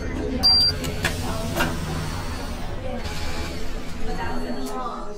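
Bus doors open with a hiss of air.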